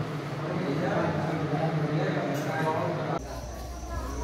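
People murmur and talk in an echoing hall.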